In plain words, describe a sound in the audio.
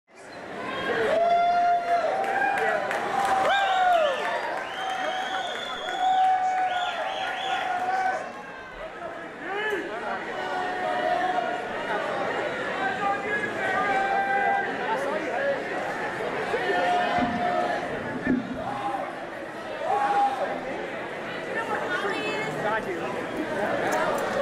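A rock band plays live on electric guitars and drums, loud and echoing.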